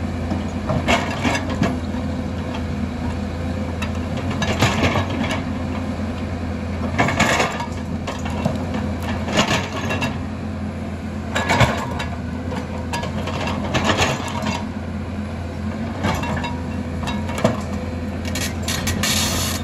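An excavator bucket scrapes and knocks against rocks and dirt.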